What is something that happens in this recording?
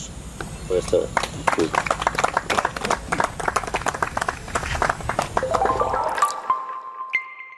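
A small group of people applaud.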